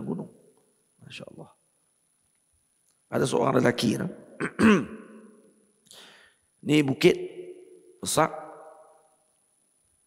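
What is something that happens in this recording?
A man speaks calmly and with emphasis into a close microphone, in short bursts with pauses.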